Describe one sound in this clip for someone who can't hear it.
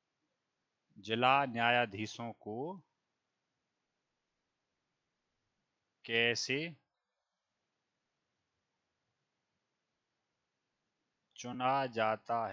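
A man speaks calmly through a headset microphone, in short phrases with pauses.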